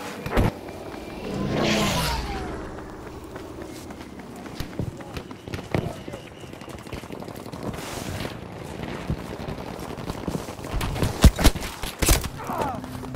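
Gunshots crack sharply at intervals.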